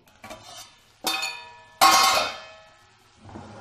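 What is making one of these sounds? A metal pan lid clanks and rings.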